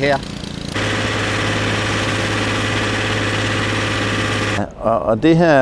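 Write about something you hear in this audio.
A chainsaw engine drones steadily nearby.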